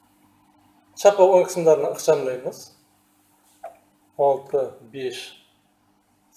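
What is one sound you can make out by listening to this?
An elderly man speaks calmly and explains, close by.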